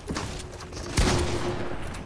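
A gunshot blasts in a video game.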